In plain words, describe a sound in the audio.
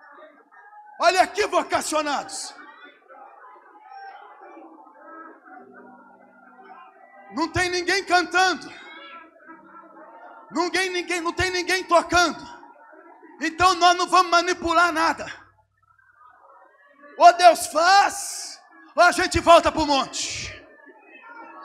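A man preaches fervently into a microphone over loudspeakers in a large echoing hall, in loud bursts.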